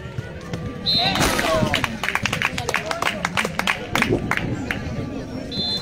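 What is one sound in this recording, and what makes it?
A volleyball is hit with hands several times.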